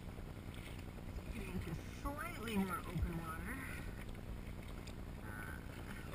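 A kayak paddle dips and splashes in the water.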